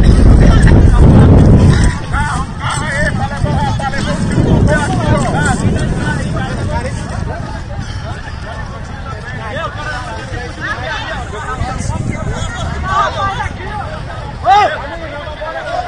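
A crowd of men and women shout and talk excitedly at a distance outdoors.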